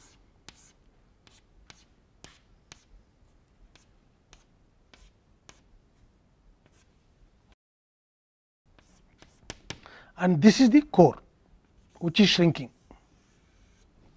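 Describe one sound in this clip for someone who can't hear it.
Chalk taps and scrapes on a blackboard.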